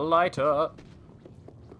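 A young man speaks briefly with animation into a microphone, close up.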